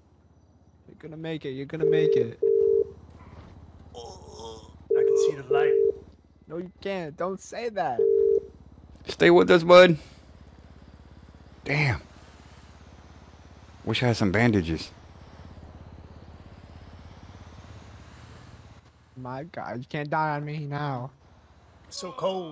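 A young man talks with animation over a microphone.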